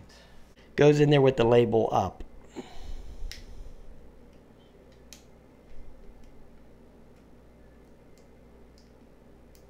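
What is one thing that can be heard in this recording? Plastic parts click and snap as a drone's arms are folded and unfolded.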